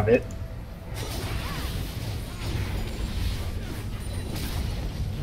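Magic blasts crackle and whoosh in a fight.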